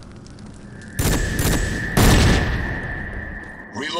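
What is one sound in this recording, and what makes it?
A fire roars and hisses nearby.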